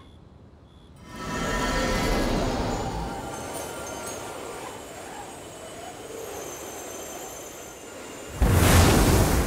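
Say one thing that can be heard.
A magical shimmering whoosh swirls and sparkles.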